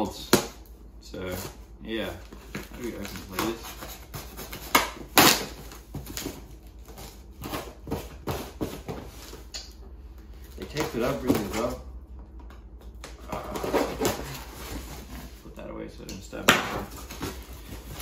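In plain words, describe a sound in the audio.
Cardboard rustles and crinkles as a box is opened.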